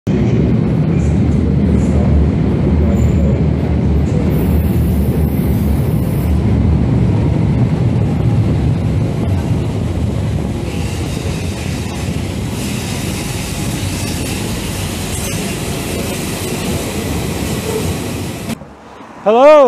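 A train rumbles loudly into the station.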